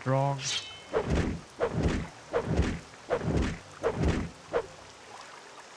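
A blade swishes and strikes repeatedly.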